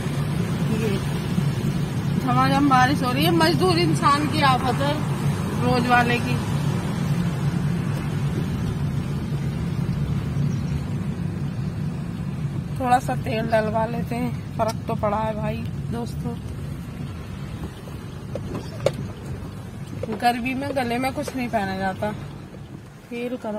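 A car engine hums low and steady, then fades.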